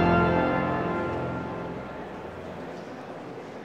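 A pipe organ chord rings out and dies away in a large echoing hall.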